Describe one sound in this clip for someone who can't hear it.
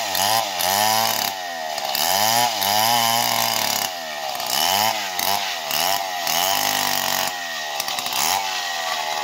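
A chainsaw engine roars, rising and falling in pitch as it cuts through wood.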